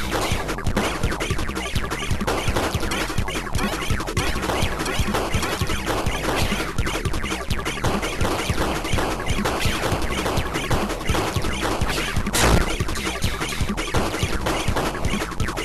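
Video game sound effects of rapid star shots fire.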